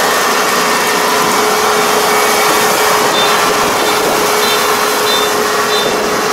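Rice stalks rustle and crunch as a harvester cuts through them.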